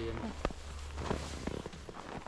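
Snow crunches under boots.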